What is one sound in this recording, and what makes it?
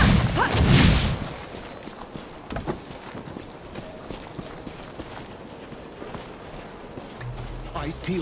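Footsteps patter quickly on dirt.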